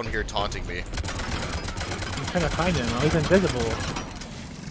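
Rapid gunshots crackle.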